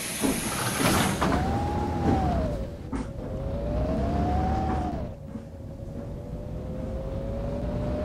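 A bus motor whines, rising and falling in pitch as the bus pulls away.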